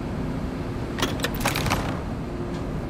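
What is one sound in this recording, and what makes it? Ammunition clicks and rattles briefly as it is picked up.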